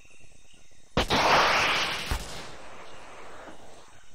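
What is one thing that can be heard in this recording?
A grenade explodes with a loud boom.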